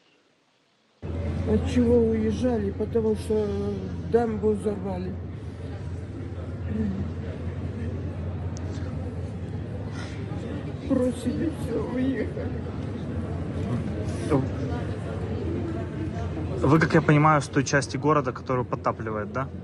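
An elderly woman speaks emotionally and close by, in a large echoing hall.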